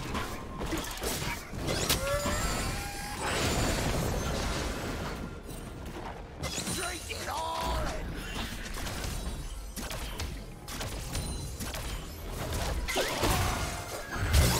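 Magical blasts and hits burst in quick succession.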